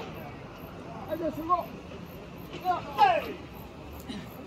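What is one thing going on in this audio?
Young men shout loudly outdoors, some distance off.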